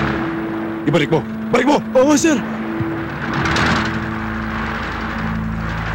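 Gunshots crack.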